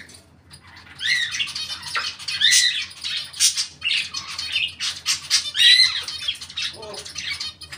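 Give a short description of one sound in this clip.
A parrot chirps and whistles loudly up close.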